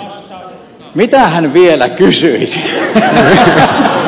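A crowd of men and women laughs loudly.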